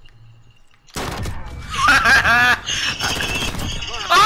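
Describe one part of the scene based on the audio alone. A pistol fires sharp, loud shots.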